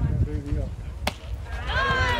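A bat cracks against a ball in the distance.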